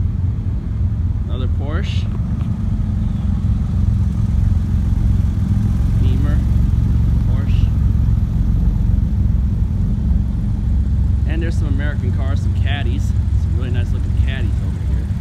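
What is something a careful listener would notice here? Sports car engines rumble deeply as cars drive slowly past, close by.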